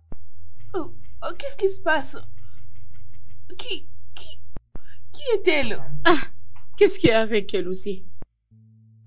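A young woman speaks urgently and with distress, close by.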